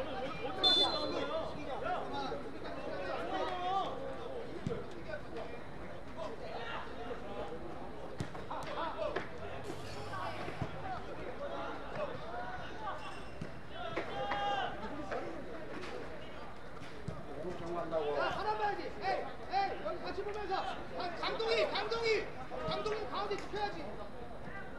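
Young players shout to one another outdoors across an open field.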